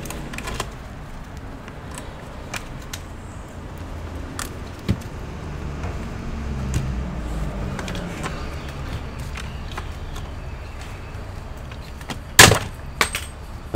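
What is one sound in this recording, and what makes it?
A hand rivet tool squeezes and a rivet snaps with a sharp crack.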